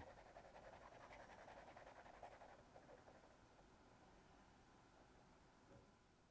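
A pencil scratches rapidly across paper.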